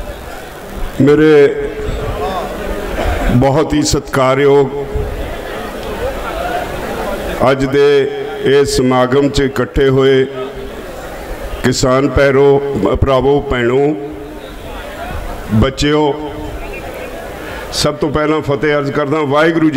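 An elderly man speaks forcefully into a microphone, heard through loudspeakers outdoors.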